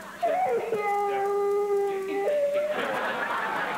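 A toddler squeals loudly in a long high shriek.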